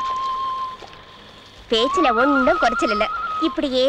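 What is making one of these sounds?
A duck splashes in water.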